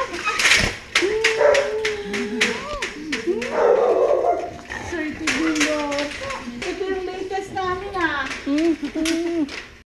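A dog whines and yelps excitedly up close.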